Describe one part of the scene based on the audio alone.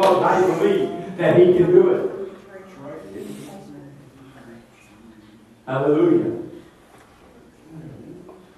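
An elderly man speaks loudly and fervently through a microphone and loudspeaker in an echoing room.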